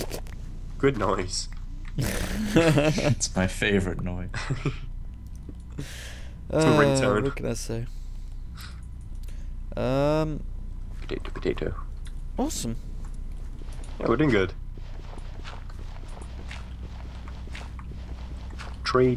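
Dirt crunches in short bursts as blocks are dug out.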